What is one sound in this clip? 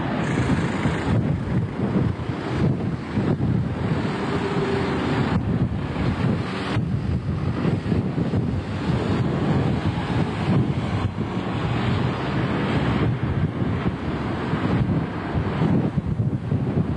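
A bus engine hums as the bus approaches slowly.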